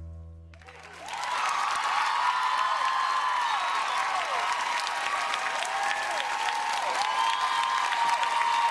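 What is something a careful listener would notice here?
Shrill whistles ring out from an audience.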